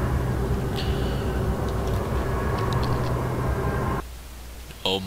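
A lift hums steadily as it moves, then stops.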